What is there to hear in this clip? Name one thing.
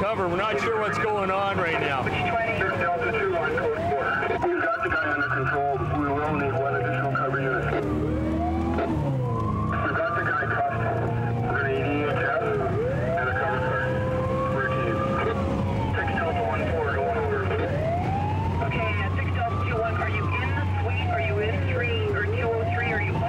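A siren wails up and down, over and over.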